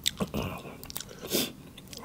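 Fresh herbs rustle and snap between fingers.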